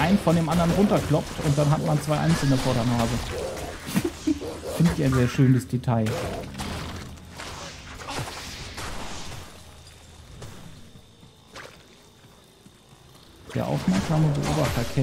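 Video game combat effects crack and clash.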